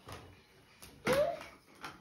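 A toddler gives a short cry.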